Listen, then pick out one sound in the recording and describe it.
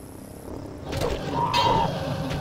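A blade swishes and strikes a creature.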